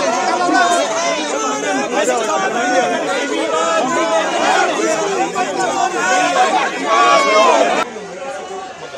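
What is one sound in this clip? A crowd of men shout over each other in a scuffle.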